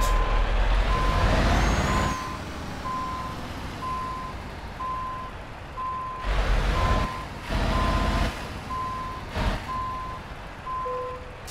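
A truck's reverse warning beeper beeps at an even pace.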